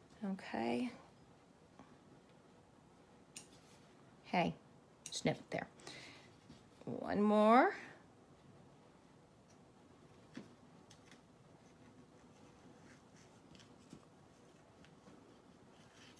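Scissors snip through thin fabric.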